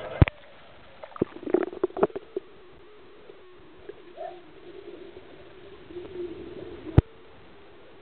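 Muffled underwater sloshing and thumps come from a dog swimming nearby.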